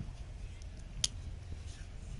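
A rifle clicks sharply as it is handled.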